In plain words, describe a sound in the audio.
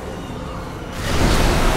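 A burst of fiery magic roars loudly.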